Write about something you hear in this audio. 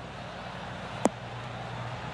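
A golf ball thuds as it lands on grass.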